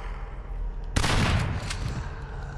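A gunshot bangs and echoes.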